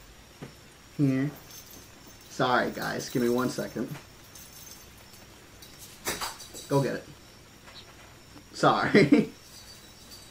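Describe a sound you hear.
A young man speaks close to a microphone in short, playful bursts.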